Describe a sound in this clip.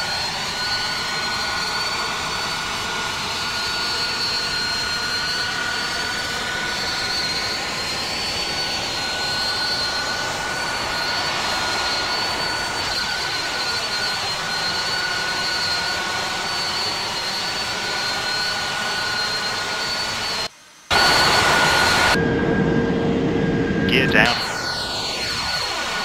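Jet engines roar steadily as an airliner climbs.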